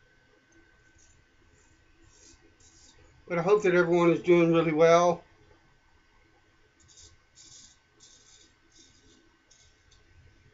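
A razor scrapes softly across stubble in short strokes.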